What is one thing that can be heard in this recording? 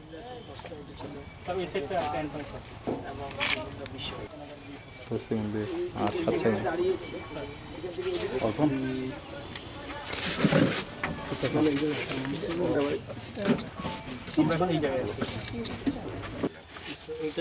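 Several men talk outdoors.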